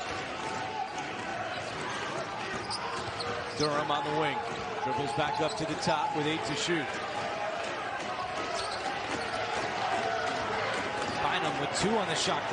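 A basketball thumps as it is dribbled.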